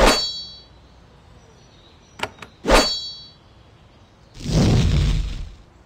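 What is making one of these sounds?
Metal blades clash in a fight.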